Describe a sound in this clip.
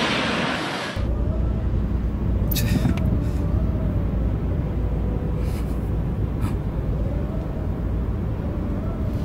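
A car engine hums low from inside the car.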